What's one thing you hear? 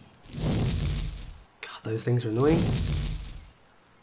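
Magical spells burst with whooshing, crackling effects.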